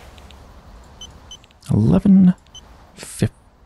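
Keypad buttons beep as they are pressed.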